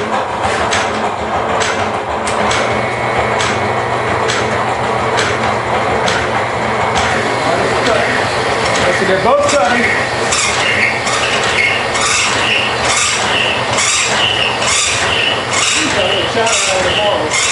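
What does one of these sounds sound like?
A band saw motor hums steadily.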